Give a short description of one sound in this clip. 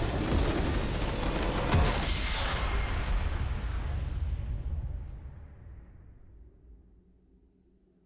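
A triumphant victory fanfare plays and fades away.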